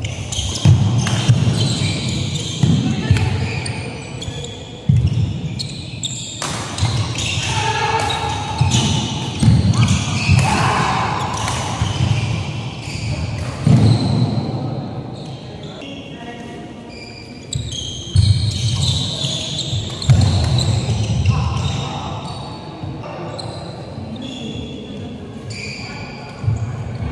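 Players' shoes squeak and thud on the court floor.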